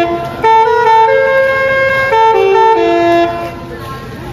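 A vehicle horn plays a loud, cheerful tune.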